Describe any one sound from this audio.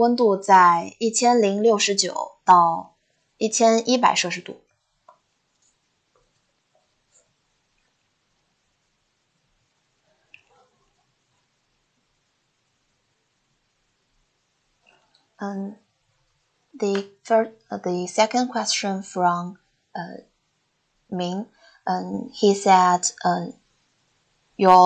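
A woman speaks calmly through an online call, pausing now and then.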